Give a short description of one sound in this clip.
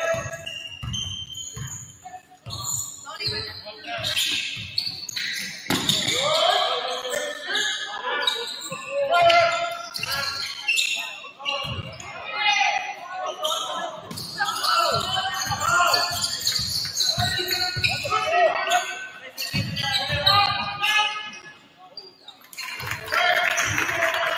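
A basketball bounces on a hard wooden floor in an echoing gym.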